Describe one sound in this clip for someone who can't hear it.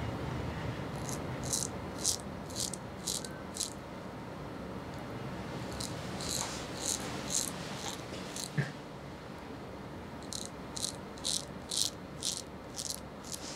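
A straight razor scrapes through stubble in short, rasping strokes, close by.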